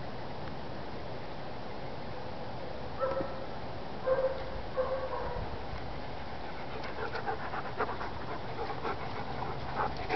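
A German Shepherd pants with its tongue out.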